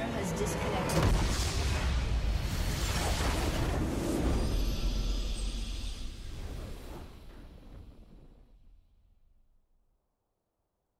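A huge explosion booms and rumbles, then slowly fades away.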